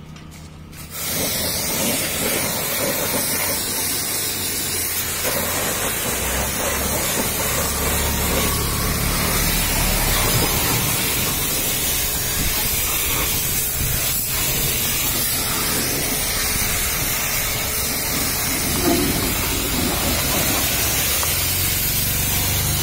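A pressure washer sprays water in a loud, steady hiss.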